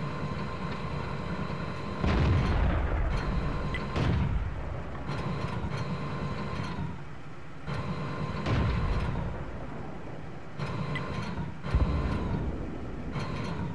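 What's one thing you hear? Branches and leaves rustle and crack as a tank pushes through bushes.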